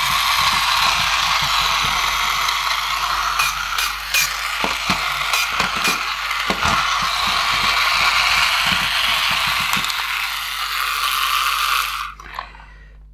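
A toy robot's motor whirs as it rolls across a table.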